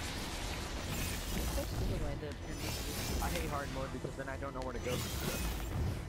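A burst of energy whooshes and crackles.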